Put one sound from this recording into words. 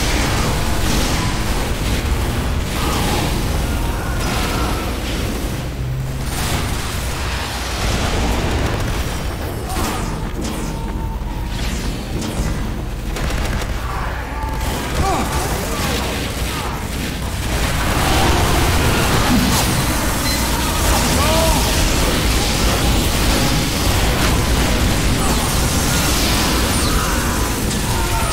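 A healing beam hums steadily.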